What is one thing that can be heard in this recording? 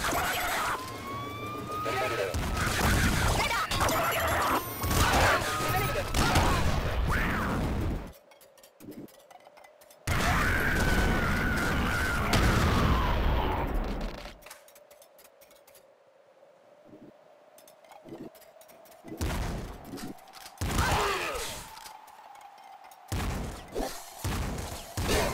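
Video game gunfire and explosions blast rapidly.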